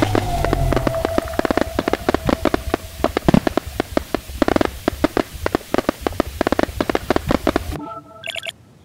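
Electric sparks crackle and zap rapidly.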